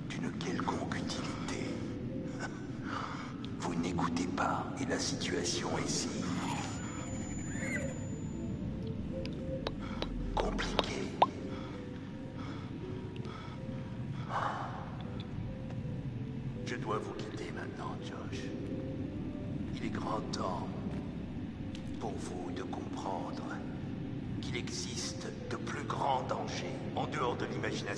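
A middle-aged man speaks slowly and menacingly, close by.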